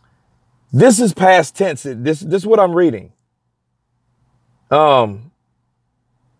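A man speaks close to the microphone with animation, then falls silent.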